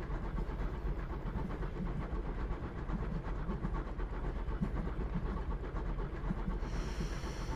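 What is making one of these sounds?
A train rolls along rails with a low rumble and rhythmic clatter.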